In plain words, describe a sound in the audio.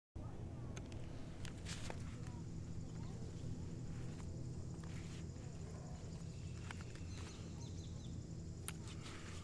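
Footsteps rustle through grass close by.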